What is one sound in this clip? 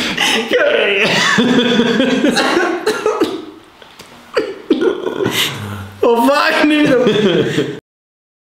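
A second young man laughs and talks excitedly close by.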